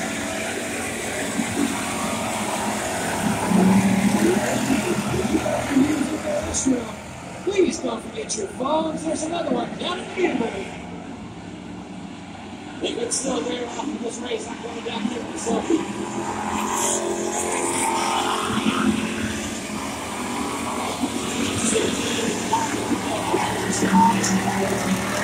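Race car engines roar around a dirt track outdoors.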